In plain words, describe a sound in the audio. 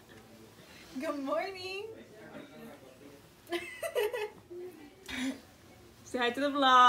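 Two young women laugh.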